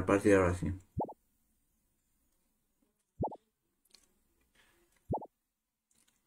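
Short electronic beeps sound as menu options are chosen.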